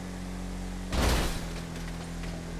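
Metal crashes and scrapes in a sudden collision.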